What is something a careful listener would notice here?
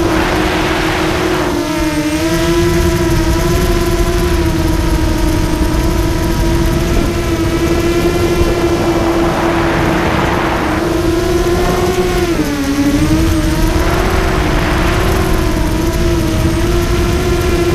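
Wind rushes past outdoors in gusts.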